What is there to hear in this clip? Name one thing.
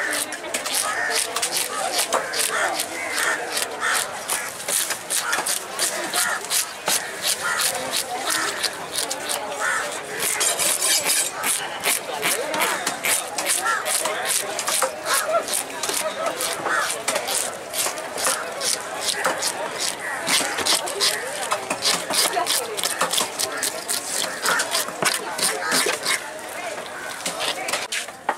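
A knife blade scrapes scales off a fish in quick, rasping strokes.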